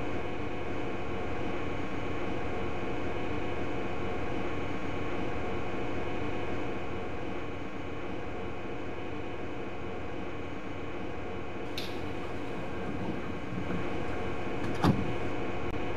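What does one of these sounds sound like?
An electric train hums steadily while standing still.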